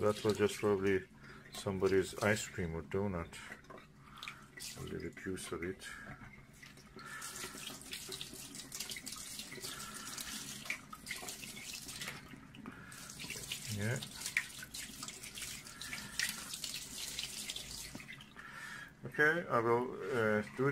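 Water from a tap pours steadily into a metal sink.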